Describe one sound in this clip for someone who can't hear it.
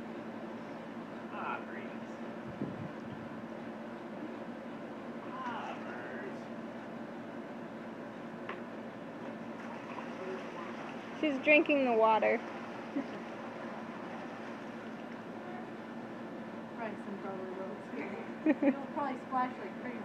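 Water splashes in a paddling pool.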